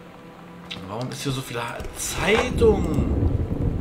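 A wooden drawer scrapes open.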